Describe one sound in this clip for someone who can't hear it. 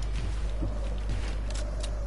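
Quick footsteps patter on a hard surface.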